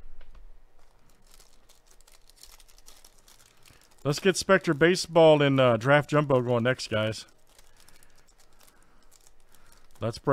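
A plastic wrapper crinkles and tears as it is ripped open.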